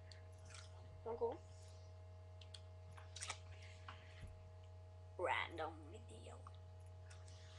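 A boy speaks in short bursts, close to a microphone.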